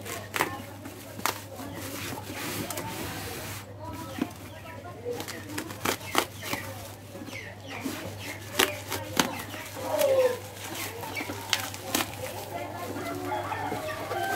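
A knife slices through plastic wrapping.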